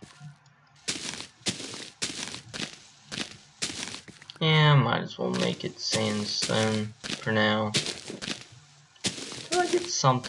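Blocks of earth crunch in short bursts as they are dug out.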